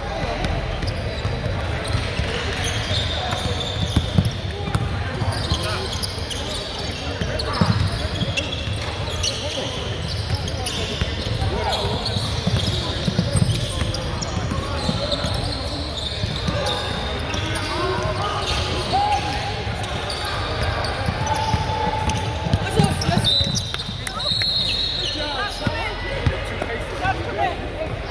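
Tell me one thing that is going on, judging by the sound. Spectators and players talk and shout in a large echoing gym.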